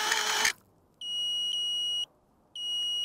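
A drone beeps in long, even tones.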